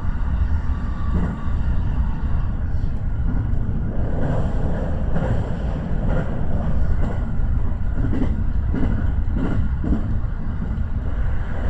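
Train wheels clatter over rail joints and points.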